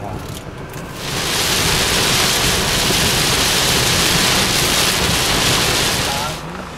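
Heavy rain pounds on a car windscreen.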